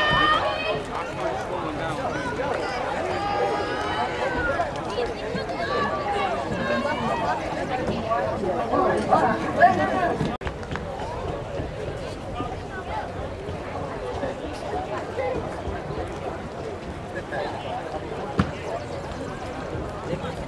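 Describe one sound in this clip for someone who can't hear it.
Voices of people chatter in the distance outdoors.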